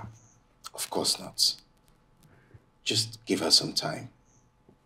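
A younger man answers with animation nearby.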